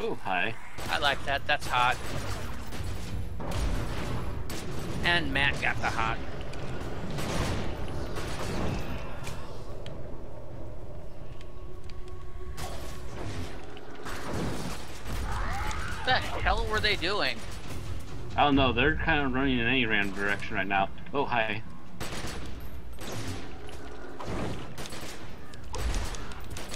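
Fighting sounds of blows and magic blasts thud and crackle.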